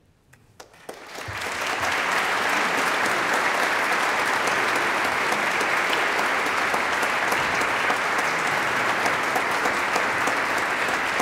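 A large audience applauds in a big echoing hall.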